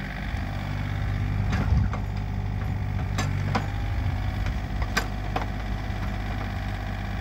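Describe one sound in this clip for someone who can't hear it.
A diesel engine rumbles steadily outdoors.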